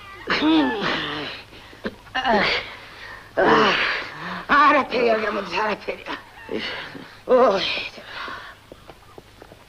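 An elderly woman wails and sobs loudly.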